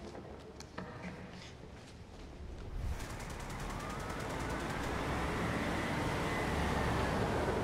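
A propeller plane's engine drones steadily and grows louder.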